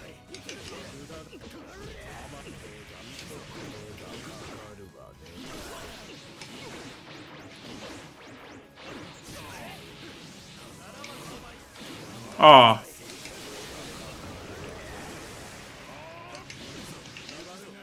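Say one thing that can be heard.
Punches and energy blasts hit in a fighting video game.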